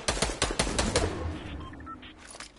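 A sniper rifle fires and a bullet strikes a wall.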